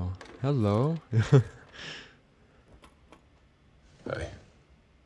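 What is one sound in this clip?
A young man talks close to a microphone, amused.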